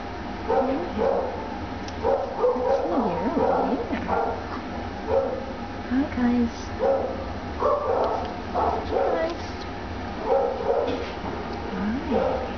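Kittens meow repeatedly, close by.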